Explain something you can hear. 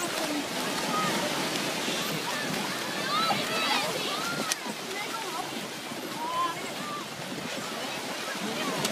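Small waves wash onto the shore.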